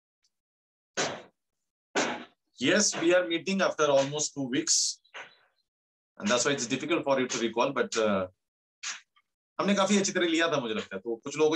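A middle-aged man speaks calmly through an online call, in bursts with pauses.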